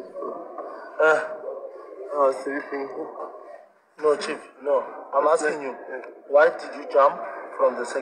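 A man asks questions firmly, close by.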